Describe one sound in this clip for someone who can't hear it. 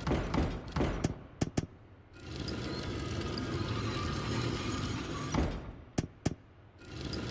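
A mechanism clicks sharply into place.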